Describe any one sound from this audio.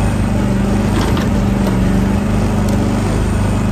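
A digger bucket scrapes and knocks against dirt and stones.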